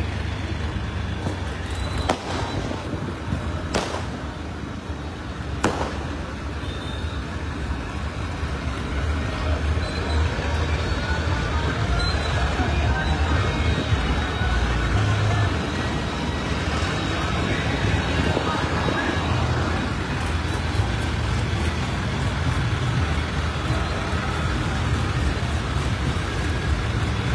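A vehicle engine rumbles steadily close by.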